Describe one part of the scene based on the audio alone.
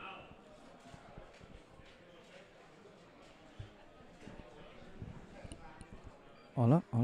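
Pool balls clack together as they are gathered on a table.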